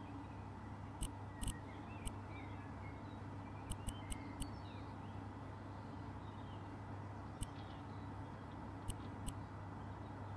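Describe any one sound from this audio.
Soft menu clicks tick now and then.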